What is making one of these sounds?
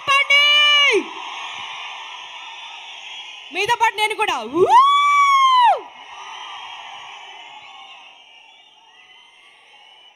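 A large crowd cheers between the woman's sung lines.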